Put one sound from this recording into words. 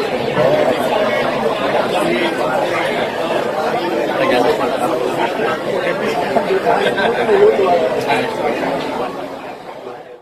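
Several men chat and laugh close by.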